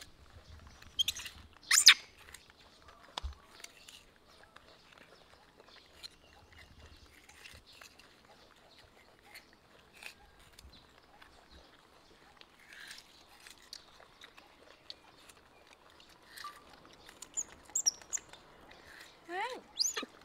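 Young monkeys squeak and chirp in short high calls.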